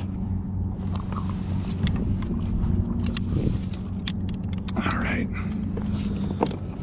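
A fishing rod and tackle rattle and click.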